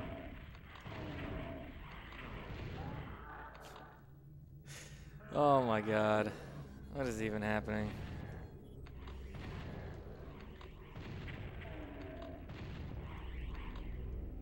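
Gunshots boom from a game.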